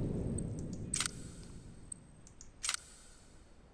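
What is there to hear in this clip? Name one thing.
Short clicks sound as a game menu is worked.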